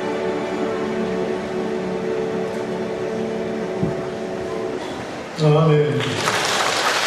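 A large choir sings in an echoing hall.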